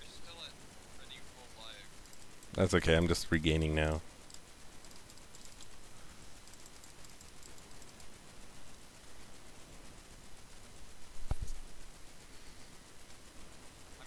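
Fantasy spells crackle and burst during a video game battle.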